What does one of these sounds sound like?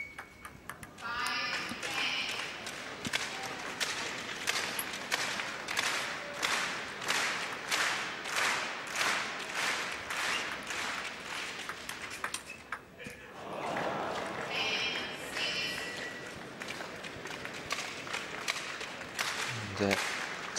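A large crowd applauds and cheers loudly in an echoing hall.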